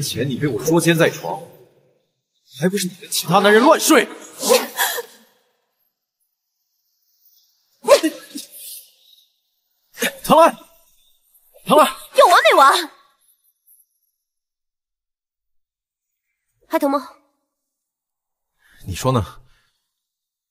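A young woman speaks sharply and accusingly, close by.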